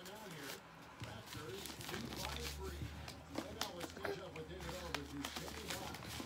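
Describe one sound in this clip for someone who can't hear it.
Paper crinkles and rustles as a package is handled.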